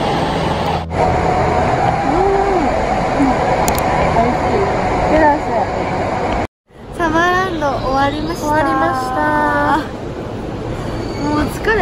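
Two young women talk with animation close by.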